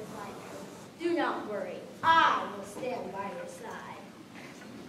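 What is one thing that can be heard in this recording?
A young girl speaks clearly on a stage in a hall.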